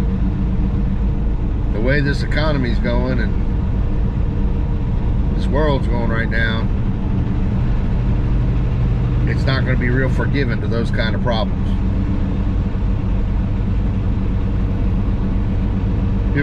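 An engine drones steadily.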